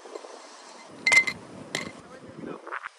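Ice cubes clink in a glass.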